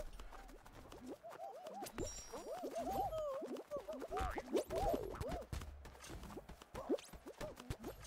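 Bouncy, cartoonish game sounds boop and chirp rapidly.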